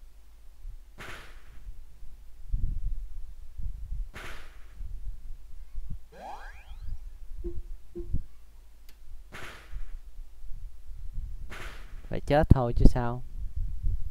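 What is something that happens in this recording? Short whooshing and thudding battle sound effects play from a video game.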